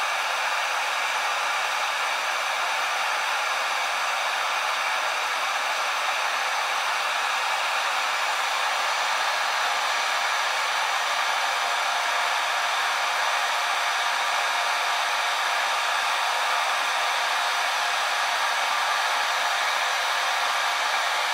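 A heat gun blows with a steady, close rushing hiss.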